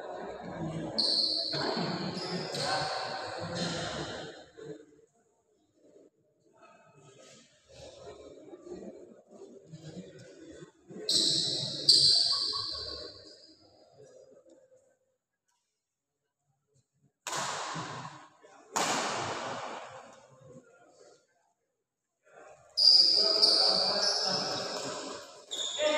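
Badminton rackets strike a shuttlecock back and forth in an echoing hall.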